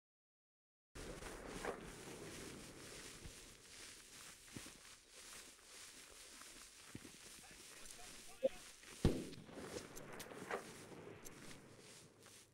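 Gunfire crackles faintly in short bursts.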